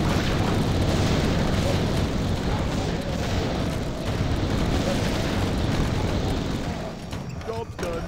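Many small battle sounds of clashing, hits and magic blasts crackle densely together.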